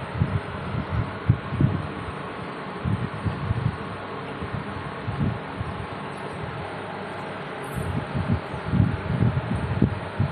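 Fingers squish and mix rice on a metal plate, close by.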